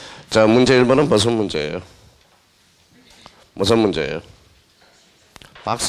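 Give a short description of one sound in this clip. A felt eraser rubs across a chalkboard.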